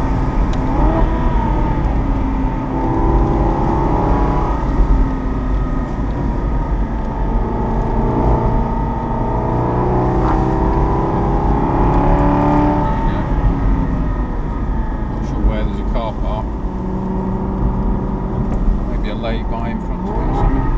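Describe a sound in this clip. A V8 sports car engine pulls through the gears on an open road.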